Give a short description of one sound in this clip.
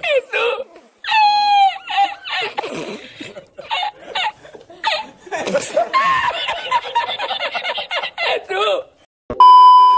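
An elderly man laughs loudly and heartily, with long rolling cackles.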